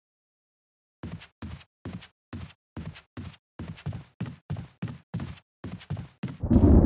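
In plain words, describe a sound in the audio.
Footsteps thud steadily on a wooden floor.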